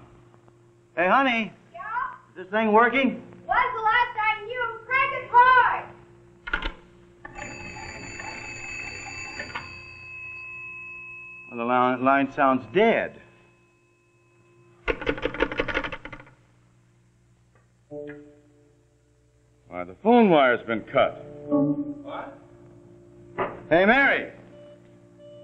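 A man speaks urgently into a telephone, close by.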